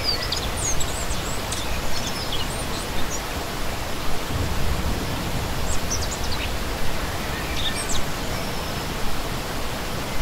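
A stream rushes and splashes over rocks, steady throughout.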